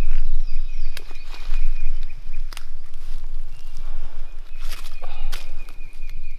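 Dry twigs snap and crack underfoot.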